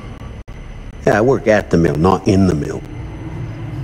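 A second man answers in a low voice.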